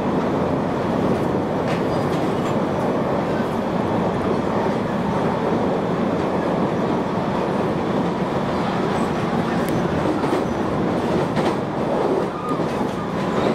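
An electric train's interior rumbles as it runs at speed.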